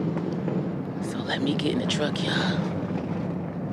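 A man speaks close by in a low voice.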